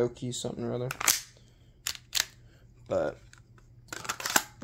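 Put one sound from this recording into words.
A hard plastic holster clicks and snaps as a pistol is handled.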